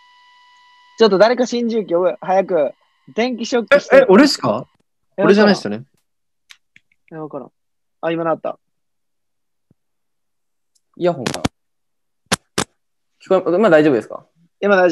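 A young man talks through an online call.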